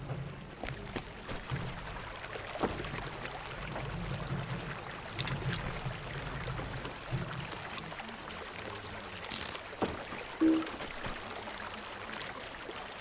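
Water splashes steadily in a fountain.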